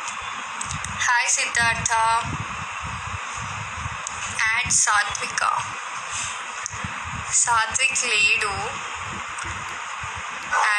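A young woman talks calmly and closely into a phone microphone.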